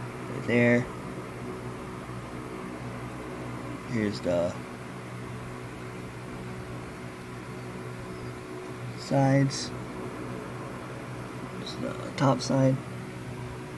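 A young man speaks in short bursts close to a microphone.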